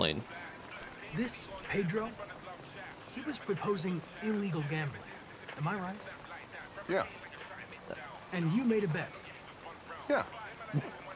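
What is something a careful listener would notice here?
Two men talk calmly back and forth, a little quieter.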